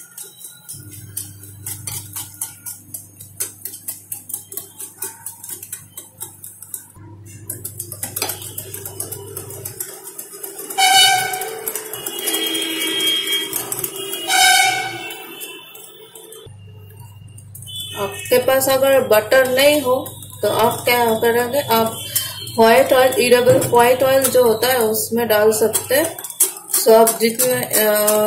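A wire whisk beats batter briskly, clinking against a glass bowl.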